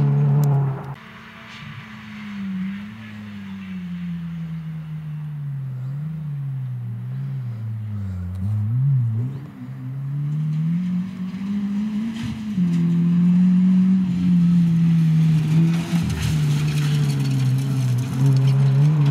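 A second rally car approaches from afar and speeds past at full throttle.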